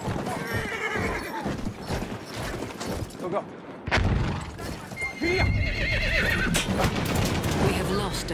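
A horse gallops, hooves pounding on the ground.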